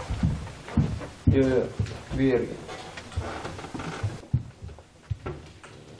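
Shoes with heels click on a hard floor.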